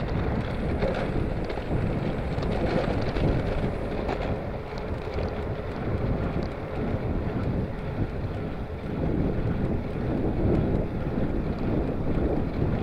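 Bicycle tyres hum and rattle on a paved path.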